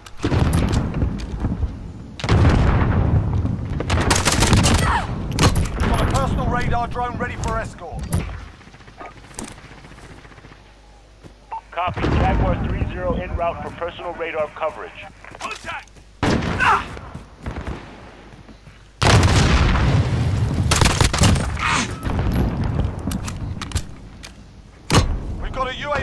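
Guns fire in rapid bursts, with sharp loud cracks.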